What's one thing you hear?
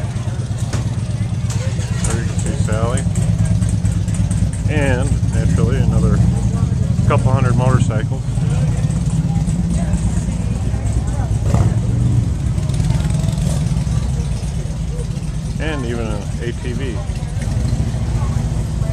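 Motorcycle engines rumble steadily nearby outdoors.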